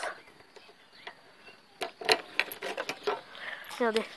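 A key scrapes and clicks in a metal lock.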